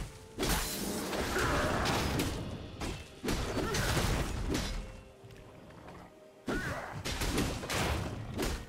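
Magic spells whoosh and crackle in short bursts during a fight.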